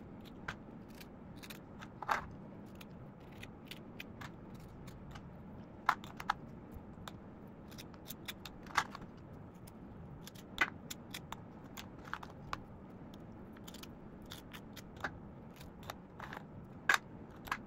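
Crisp cookies clink softly against a plate.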